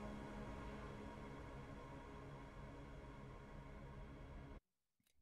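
Music plays steadily, then cuts off abruptly.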